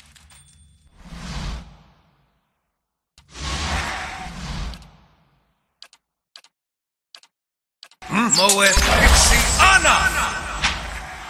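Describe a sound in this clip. Magic spell effects whoosh and crackle in a fight.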